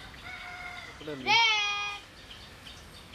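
A young girl speaks briefly nearby.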